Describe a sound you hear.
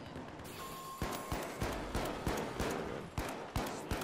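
A rifle fires rapid shots in quick bursts.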